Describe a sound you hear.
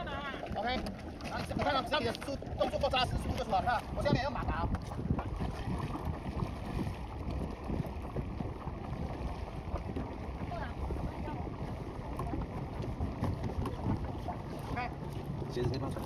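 Wind rumbles across the open water.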